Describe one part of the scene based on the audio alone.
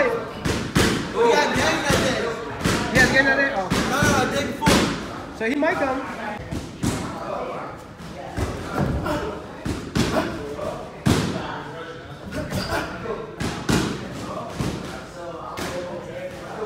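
Sneakers thud and scuff on a canvas floor.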